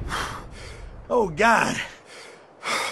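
A man speaks in shock, with a shaky voice.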